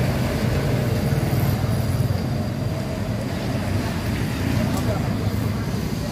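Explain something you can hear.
A motorcycle engine passes by.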